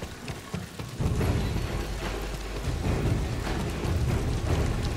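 A deep rumbling boom swells and carries on.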